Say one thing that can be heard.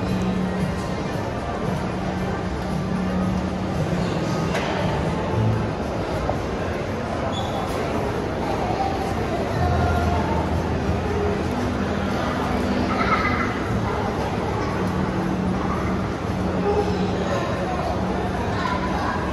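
Distant voices murmur and echo in a large indoor hall.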